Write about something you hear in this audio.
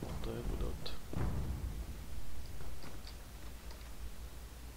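Footsteps tread on stone in an echoing space.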